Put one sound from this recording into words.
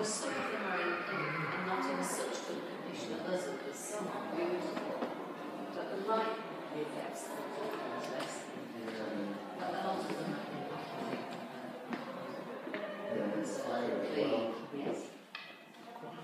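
A crowd of adult visitors chatters in a large echoing room.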